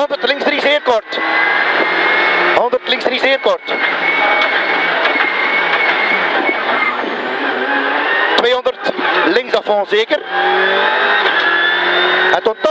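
A rally car engine roars loudly, rising and dropping in pitch as gears change.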